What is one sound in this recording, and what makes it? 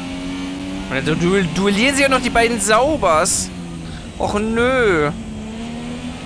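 Engine revs drop sharply as a racing car brakes for corners.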